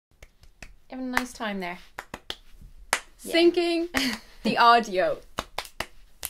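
A young woman speaks excitedly close to a microphone.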